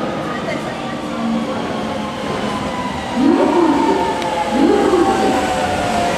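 Train brakes squeal and hiss.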